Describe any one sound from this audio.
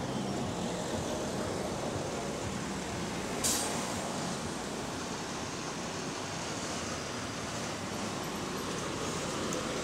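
A bus engine idles and hums close by as it pulls up.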